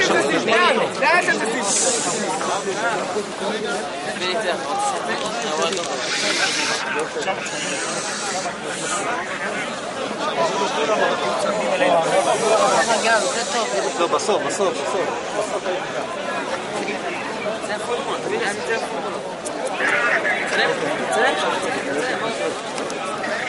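A dense crowd of men chatters and murmurs all around, close by.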